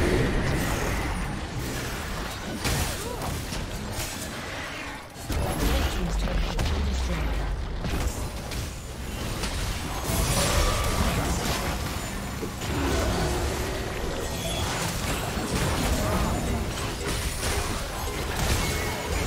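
Fighting sound effects clash and burst in quick succession.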